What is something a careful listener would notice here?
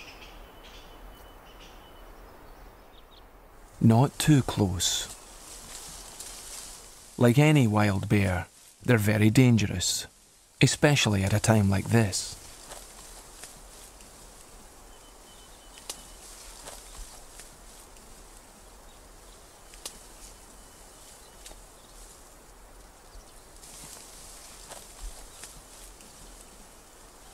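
Bamboo stalks and leaves rustle as people push through them.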